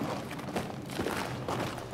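Boots thud as soldiers run.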